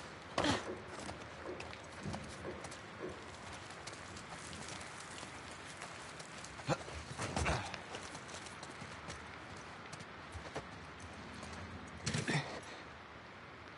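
Footsteps crunch slowly over rubble and debris.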